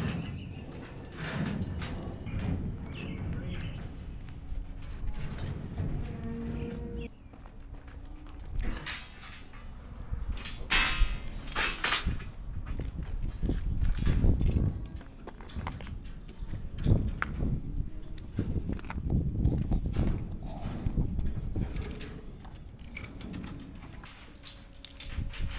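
Steel rods clink and rattle as workers handle them.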